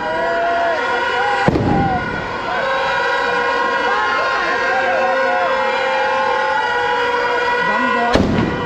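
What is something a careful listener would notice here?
Fireworks shriek and whistle shrilly.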